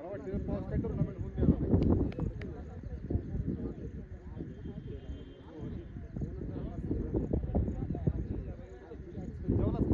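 Distant young men call out to each other outdoors.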